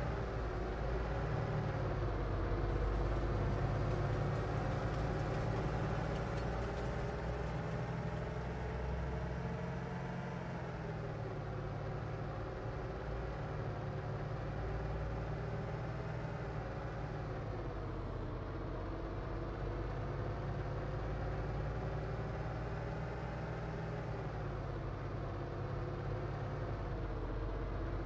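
A car engine hums steadily, rising and falling in pitch as the car speeds up and slows down.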